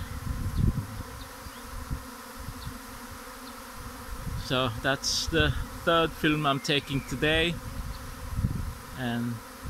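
Bees buzz steadily around hives outdoors.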